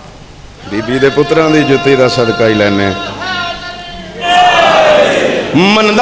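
A man speaks passionately into a microphone, heard through loudspeakers in a reverberant hall.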